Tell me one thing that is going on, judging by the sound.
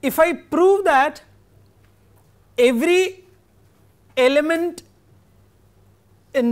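A man lectures through a close microphone in short, deliberate phrases with pauses between them.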